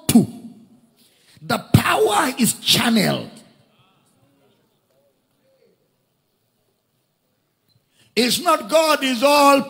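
A man preaches with animation through a loudspeaker in a large echoing hall.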